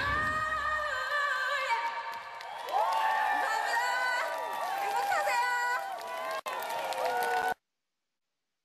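A woman sings over loud pop music with a band.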